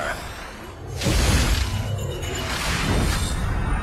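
A burst of fire whooshes and roars loudly.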